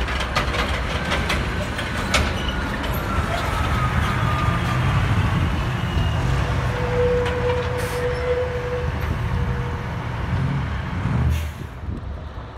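A heavy truck engine rumbles loudly as it drives past close by.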